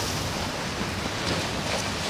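Water splashes around legs wading through the surf.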